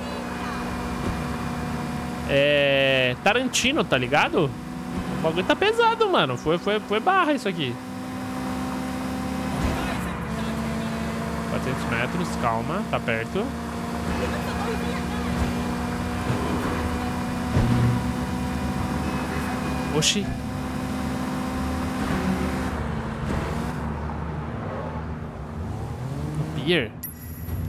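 A car engine hums steadily as a car drives fast.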